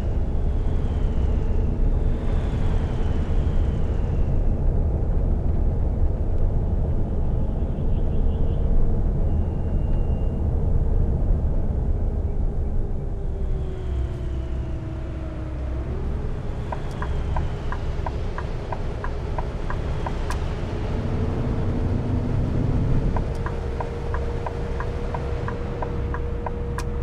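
A bus engine hums steadily, its pitch dropping and then rising again as it shifts gear.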